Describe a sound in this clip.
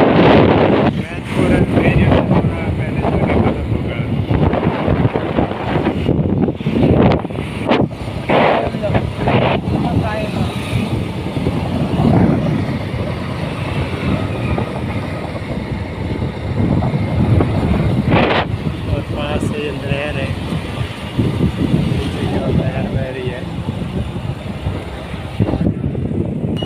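A motorbike engine hums steadily.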